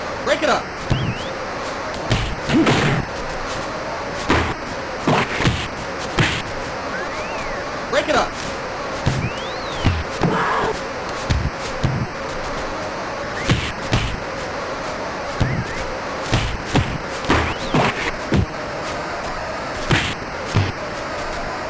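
Punches land with sharp electronic thuds in quick bursts.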